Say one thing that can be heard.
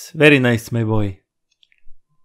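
A young man speaks close to a microphone with animation.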